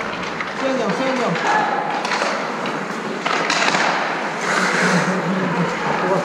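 Young voices shout and call out in a large echoing rink.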